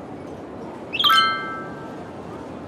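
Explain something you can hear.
A bright chime rings once.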